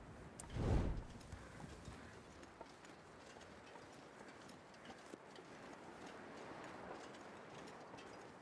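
Footsteps crunch softly through snow.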